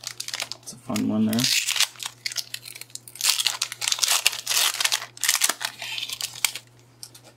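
A foil wrapper crinkles and tears as a pack is opened.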